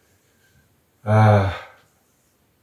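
A man speaks a short word up close.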